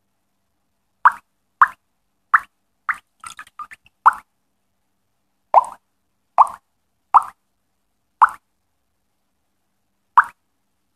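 Short, bright electronic pops sound one after another as game pipes are drawn.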